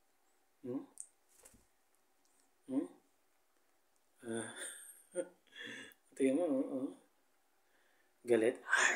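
A man speaks softly and playfully close by.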